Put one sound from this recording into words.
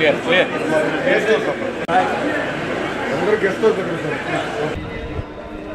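A crowd of men and women chatters loudly close by.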